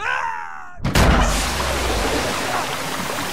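Water gushes out in a loud rushing burst.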